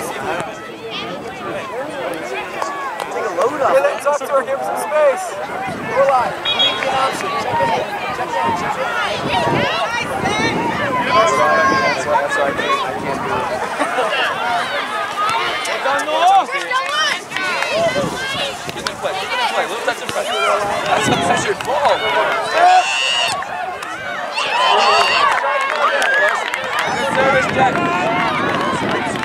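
Young players call out to each other across the field.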